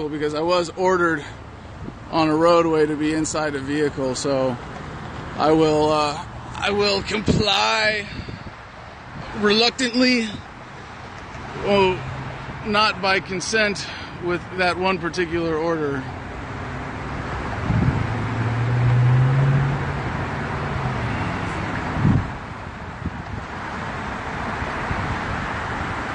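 Highway traffic roars steadily nearby.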